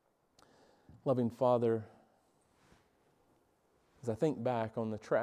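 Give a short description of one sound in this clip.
A middle-aged man speaks with emphasis through a microphone.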